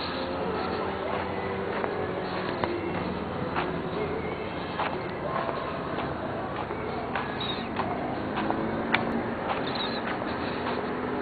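Footsteps tap steadily on pavement.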